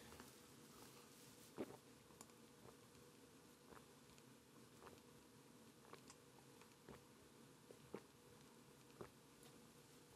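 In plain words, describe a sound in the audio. A man gulps a drink.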